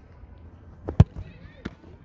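A football is kicked hard with a sharp thud.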